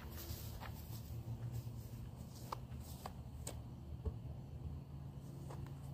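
A man's footsteps thud softly on grass.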